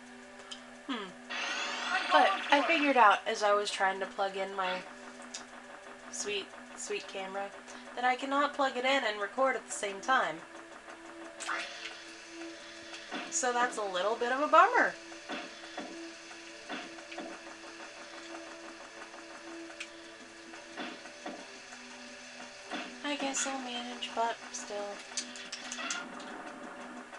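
Cartoonish game sound effects chirp and swoop through a television loudspeaker.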